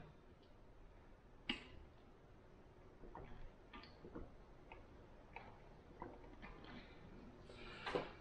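A woman gulps a drink.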